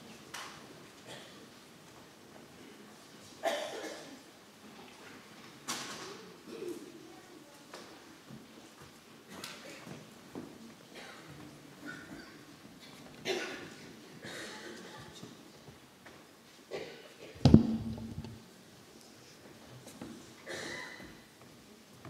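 A crowd of men and women murmurs quietly in a large hall.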